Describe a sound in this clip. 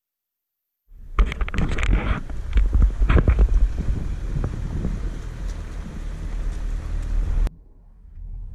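Dogs bark close by.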